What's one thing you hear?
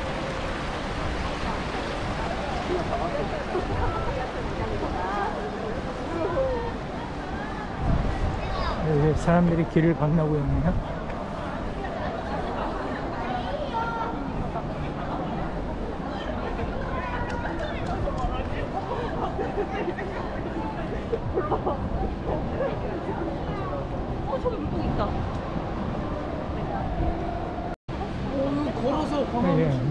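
A stream of water flows gently.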